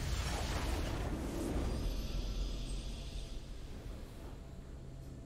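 A triumphant game fanfare swells and fades away.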